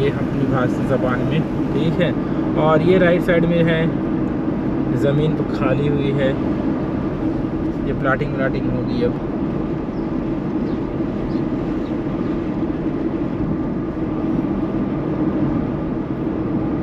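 A car engine hums steadily as tyres roll on the road.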